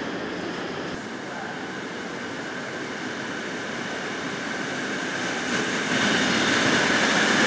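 A passenger train rolls slowly along the tracks.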